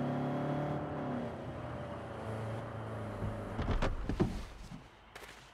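A car engine rumbles and idles.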